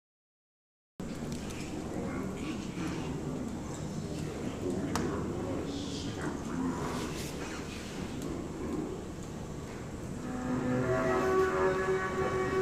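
A double bass is plucked.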